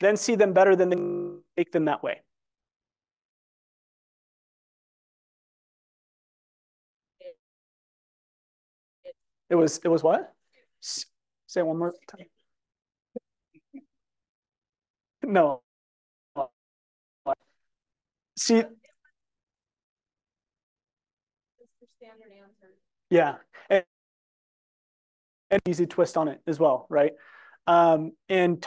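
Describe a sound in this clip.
A man speaks calmly through an online call, in bursts with pauses.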